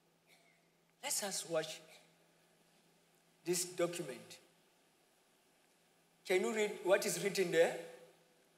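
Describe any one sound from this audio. A man speaks with animation through a microphone, in short bursts with pauses.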